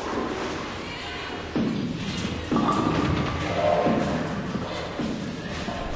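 A bowling ball rolls along a wooden lane.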